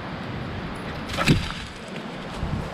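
A dog runs past through rustling dry leaves.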